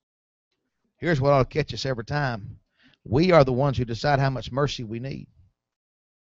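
A man preaches calmly through a microphone.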